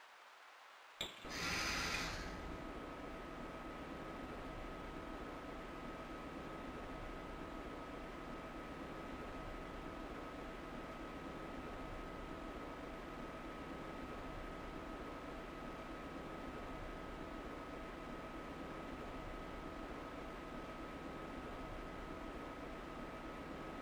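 A train's motor hums steadily.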